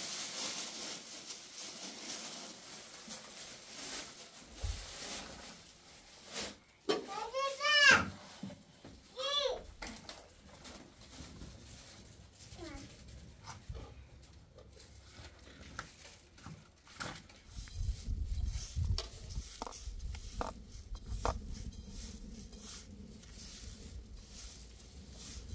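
Hands knead soft dough with soft slapping sounds.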